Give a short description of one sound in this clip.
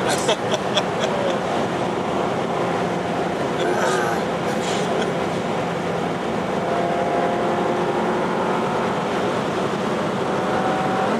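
A car engine drones at highway cruising speed, heard from inside the cabin.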